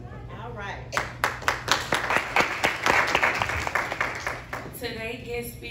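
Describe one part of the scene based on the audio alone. People clap their hands in a quick rhythm.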